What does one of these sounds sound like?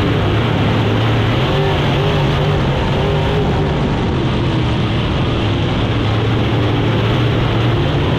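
Tyres rumble and scrabble over a dirt track.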